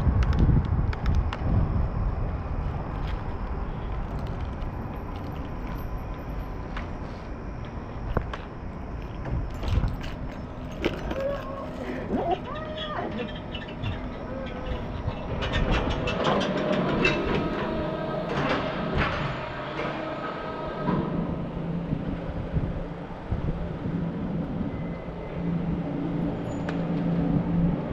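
Bicycle tyres roll over concrete in an echoing parking garage.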